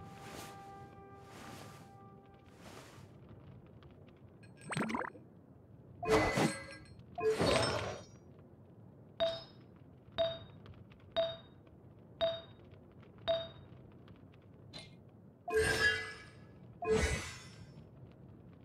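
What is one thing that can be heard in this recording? Short electronic menu chimes and whooshes sound again and again.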